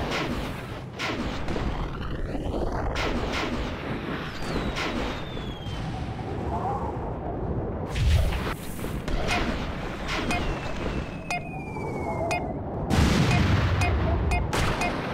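A snowboard carves and hisses over snow at high speed.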